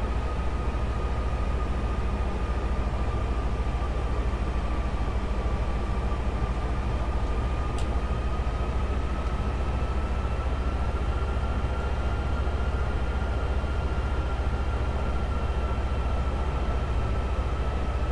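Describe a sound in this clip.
A jet engine's high whine slowly rises in pitch.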